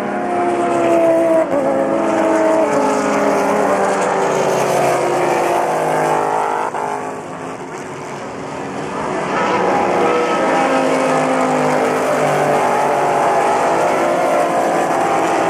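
Racing car engines whine loudly as cars speed past, fading and then rising again.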